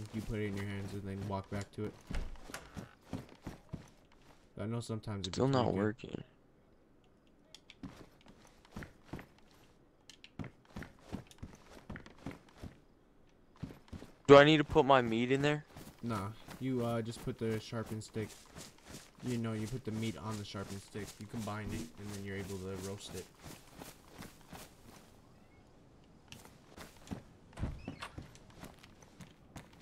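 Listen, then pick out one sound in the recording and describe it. Footsteps knock on wooden floorboards.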